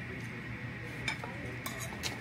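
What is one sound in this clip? Dishes clink softly on a table.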